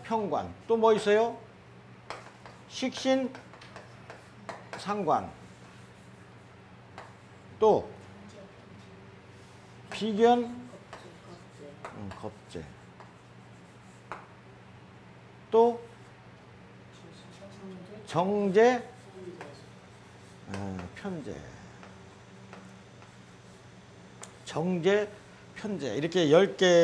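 A middle-aged man speaks through a lapel microphone, lecturing calmly in bursts with pauses.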